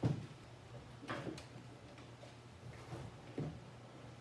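Hand tools clink and tap on a car body.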